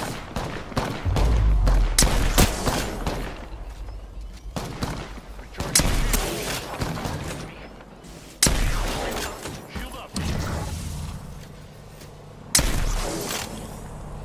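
Gunshots fire in sharp bursts, with heavy booming impacts.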